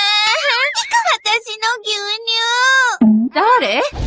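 A young girl wails and cries loudly.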